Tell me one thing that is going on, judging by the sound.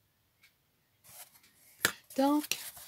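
A thin wooden board scrapes lightly as it is lifted off a table.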